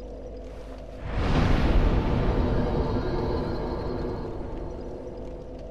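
A fire flares up with a loud whoosh, then dies down.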